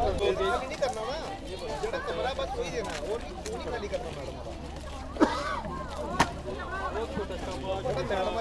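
A crowd of people talks and chatters nearby, outdoors.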